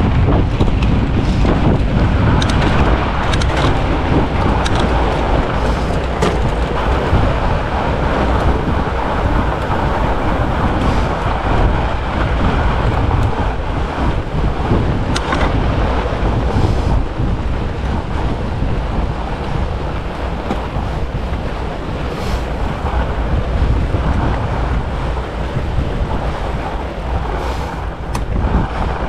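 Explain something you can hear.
Fat bicycle tyres crunch over packed snow.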